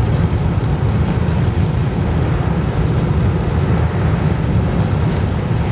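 Tyres roar steadily on a fast road, heard from inside a car.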